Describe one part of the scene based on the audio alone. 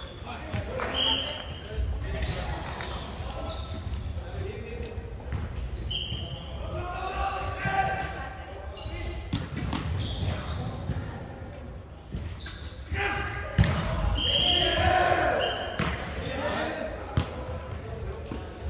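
Young men and women call out and chatter in a large echoing hall.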